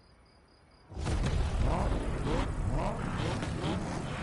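A car engine idles with a deep rumble.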